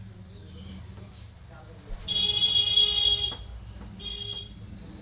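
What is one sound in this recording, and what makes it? Hands rub and knead oiled skin.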